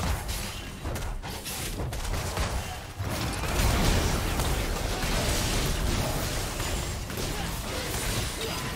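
Game spell effects whoosh and crash in a busy fight.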